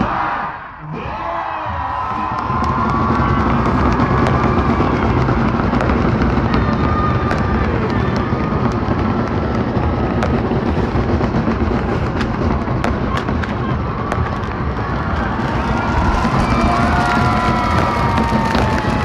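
A large crowd cheers and screams outdoors.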